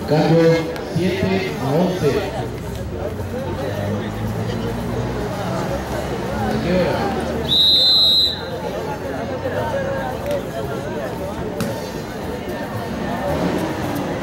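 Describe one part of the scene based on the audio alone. A ball bounces on a hard court.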